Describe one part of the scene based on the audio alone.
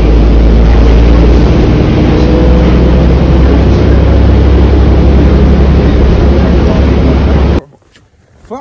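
A bus engine rumbles loudly and steadily.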